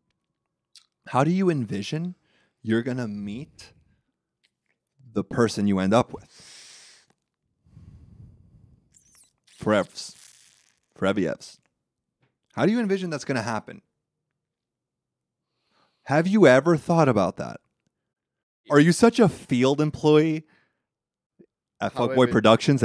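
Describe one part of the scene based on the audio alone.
A young man speaks into a microphone with animation, in short bursts.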